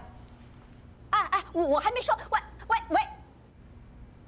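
An older woman talks warmly on a phone.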